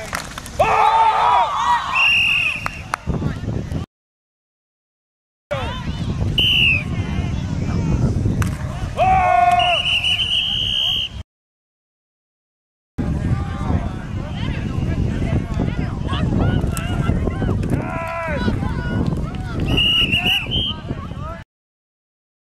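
Young players shout and call out across a field.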